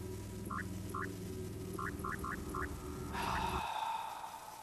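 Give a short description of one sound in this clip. Low, steady game music plays, then stops abruptly.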